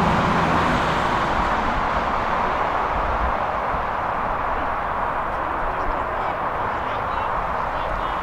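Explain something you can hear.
Young players shout faintly in the distance across an open field.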